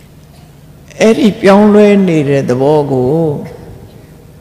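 An elderly man chants in a drawn-out, melodic voice.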